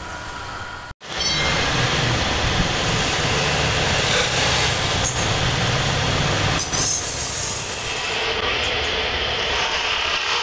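A lathe motor whirs loudly.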